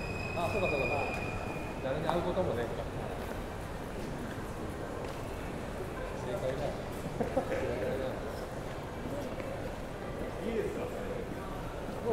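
Footsteps tap on the paving stones.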